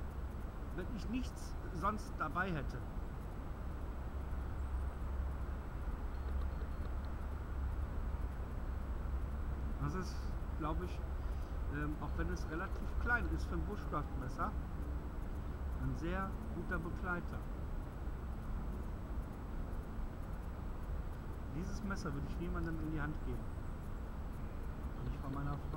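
A man talks calmly, close by, outdoors.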